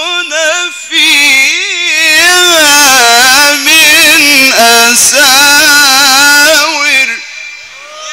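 A man chants loudly in a melismatic voice through a microphone and loudspeakers.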